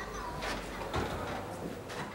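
A truck door clicks open.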